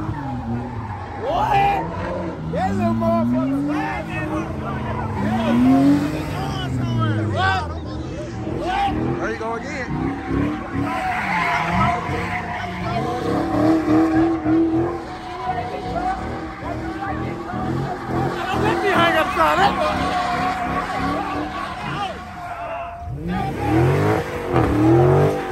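Tyres screech as a car spins on the tarmac.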